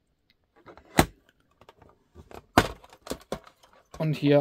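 A plastic display case knocks and clicks against a hard surface.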